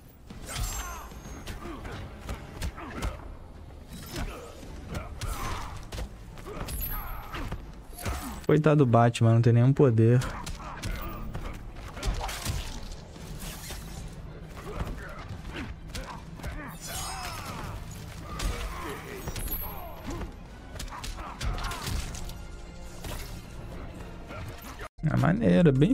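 Fighting game sound effects crash and whoosh throughout.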